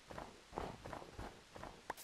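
A block crumbles as it is broken.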